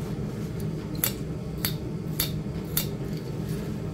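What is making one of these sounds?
A knife scrapes and shaves at wood in short strokes.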